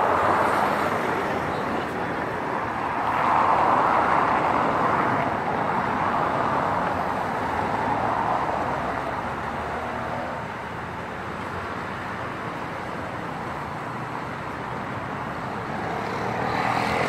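High water rushes and churns against a bridge pier.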